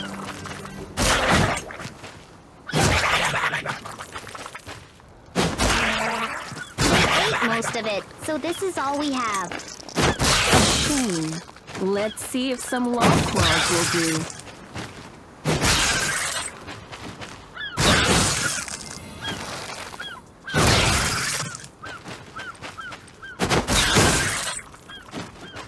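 Sword strikes and fiery blasts crash in loud, sudden bursts.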